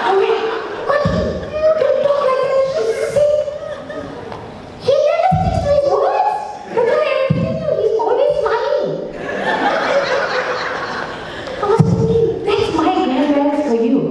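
A young woman speaks expressively through a microphone.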